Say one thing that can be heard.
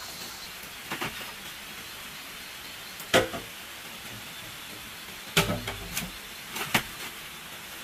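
Bamboo poles knock and clatter together.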